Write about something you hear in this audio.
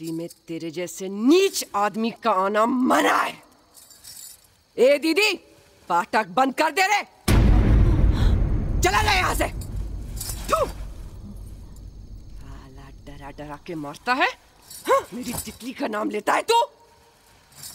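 A young woman shouts angrily close by.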